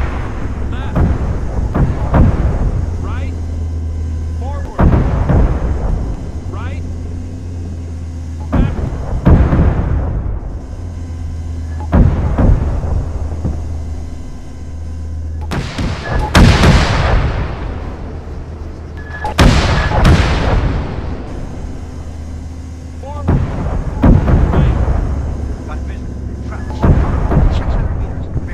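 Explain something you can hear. Heavy explosions boom again and again, with rumbling echoes.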